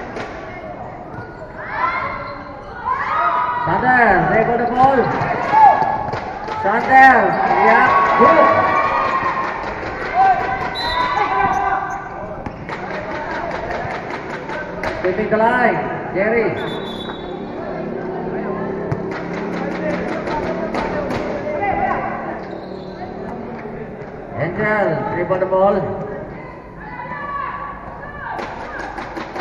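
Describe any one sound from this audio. A crowd of young spectators shouts and cheers loudly.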